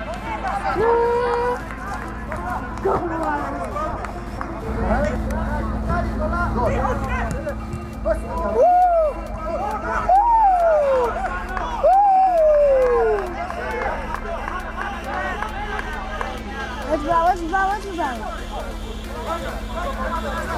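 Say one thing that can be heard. Young men shout to each other outdoors.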